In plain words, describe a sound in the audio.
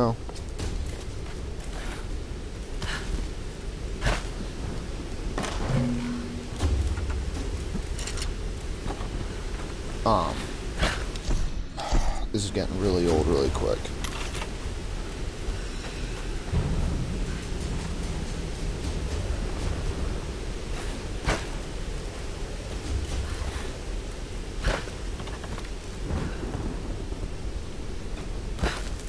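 Footsteps thud on wood and grass.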